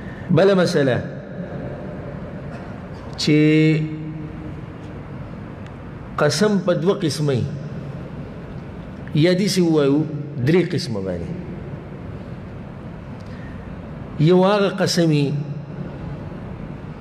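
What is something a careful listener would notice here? A man chants in short melodic phrases close to a microphone, with a slight echo.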